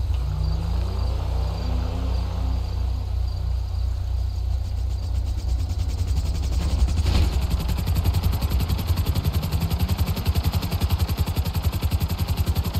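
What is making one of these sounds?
A small helicopter's rotor chops loudly and steadily.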